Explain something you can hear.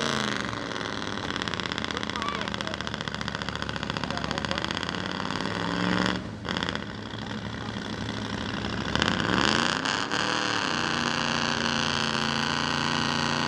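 A truck engine roars and revs loudly.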